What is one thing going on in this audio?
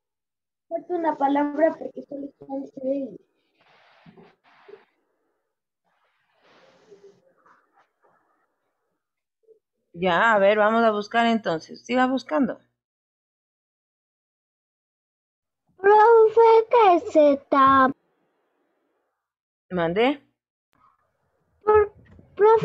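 A child speaks in short bursts through an online call.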